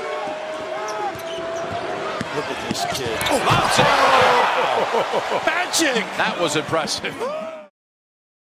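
Basketball shoes squeak on a hardwood court.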